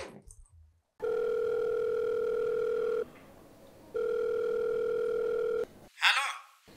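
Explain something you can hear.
A phone ringing tone sounds steadily, pausing once.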